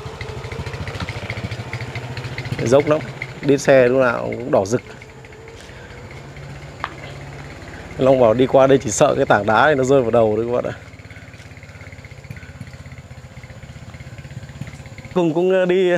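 A motorbike engine putters along nearby.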